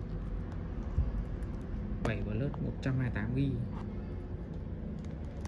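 Smartphones tap and clack against each other as a hand stacks them.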